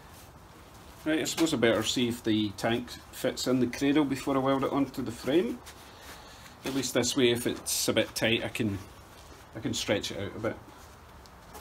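A middle-aged man talks calmly and close by.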